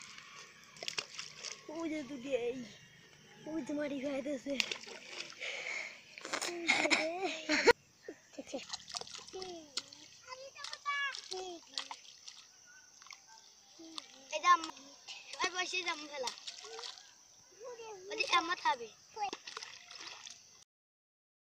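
Stones splash into water.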